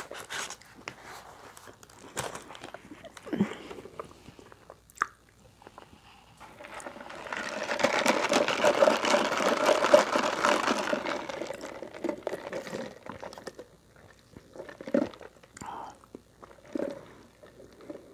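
A young woman chews food close by with wet, smacking sounds.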